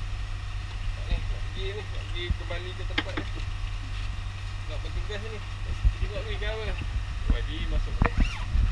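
A middle-aged man talks casually.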